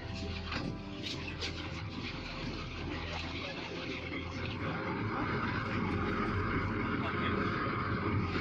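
Passengers chatter nearby.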